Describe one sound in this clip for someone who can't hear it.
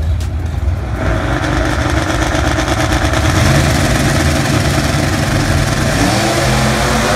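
Race car engines roar to full power as the cars launch down the track.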